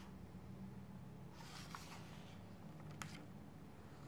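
A book page is turned with a soft paper rustle.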